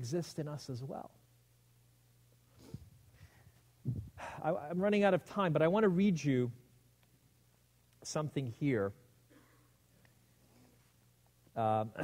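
A man speaks calmly into a microphone, reading out.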